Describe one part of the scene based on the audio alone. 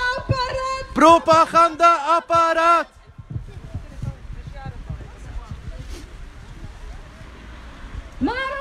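A woman shouts through a megaphone.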